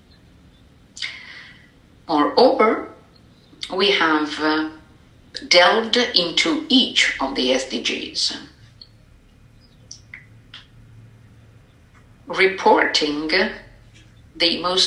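A man talks calmly through a microphone on an online call.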